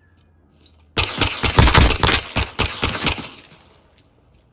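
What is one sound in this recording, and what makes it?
A rifle fires rapid shots in short bursts.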